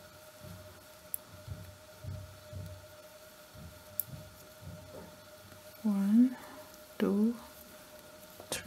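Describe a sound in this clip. Metal knitting needles click and scrape softly against each other.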